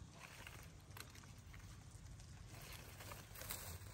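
Dry branches snap and rustle as they are gathered.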